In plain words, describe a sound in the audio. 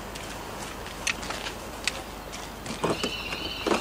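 Gear knocks and rustles as it is loaded into a car boot.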